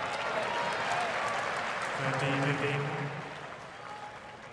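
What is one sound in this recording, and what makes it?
A crowd cheers and applauds loudly, then dies down.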